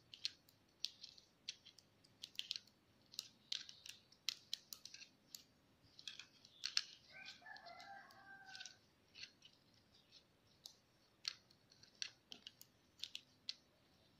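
Metal knitting needles click and tap together in quick, uneven bursts.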